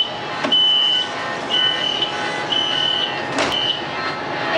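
Sliding train doors close with a thud.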